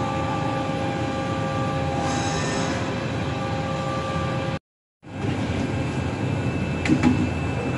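Industrial machines hum and whir steadily in a large hall.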